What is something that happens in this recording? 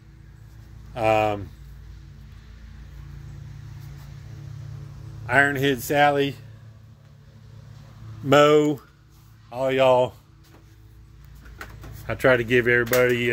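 An older man talks close up in short bursts, with pauses.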